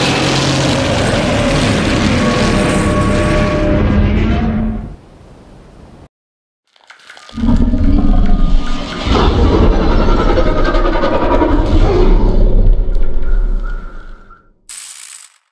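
A giant creature lets out loud, deep, rumbling roars.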